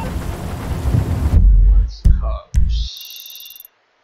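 A phone menu clicks and beeps.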